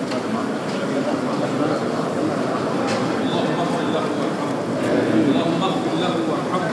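A crowd of men murmurs and talks in a large echoing hall.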